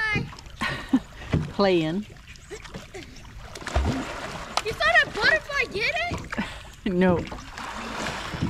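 Water splashes as a boy wades through it.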